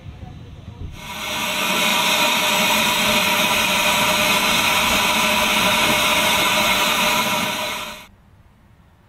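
A steam locomotive hisses loudly as it vents steam.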